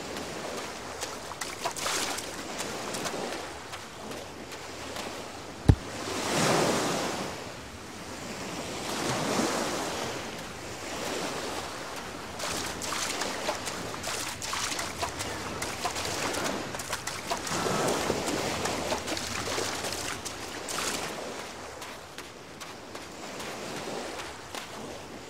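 Waves wash gently onto a shore, rising and falling.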